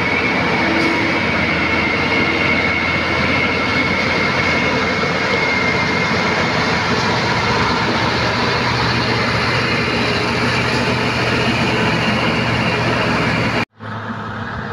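Large truck engines rumble steadily close by.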